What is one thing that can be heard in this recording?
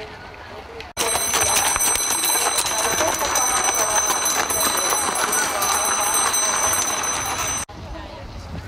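A horse-drawn carriage rattles loudly along a road.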